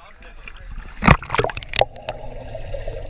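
A swimmer plunges into a pool with a burst of bubbles.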